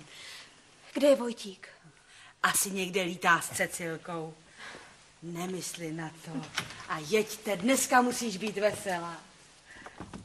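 A young woman answers calmly nearby.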